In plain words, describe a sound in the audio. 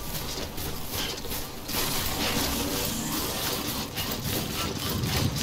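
Footsteps crunch through grass and gravel.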